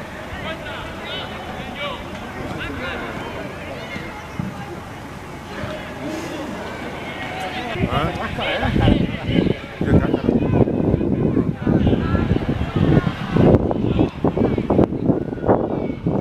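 Young men shout and call to each other across an outdoor pitch.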